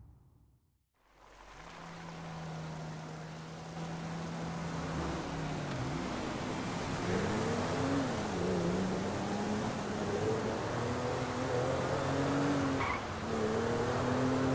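A car engine hums and revs as the car speeds along a road.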